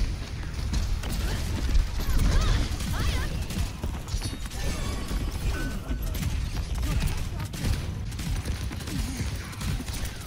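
Rapid gunfire and energy blasts crack and thump throughout.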